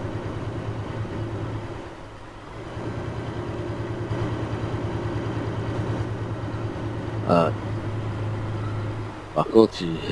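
A diesel semi-truck engine drones as the truck drives along.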